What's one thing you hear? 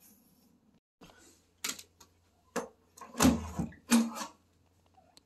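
A door handle clicks and a door swings open with knocks.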